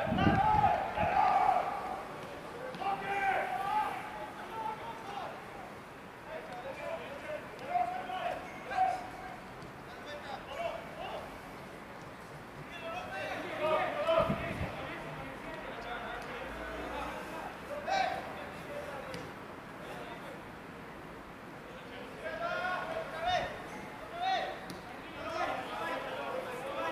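Men shout to each other in the distance outdoors.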